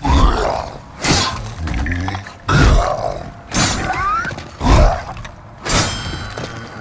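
A sword strikes with heavy metallic blows.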